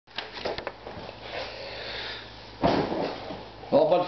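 A chair creaks as someone sits down in it.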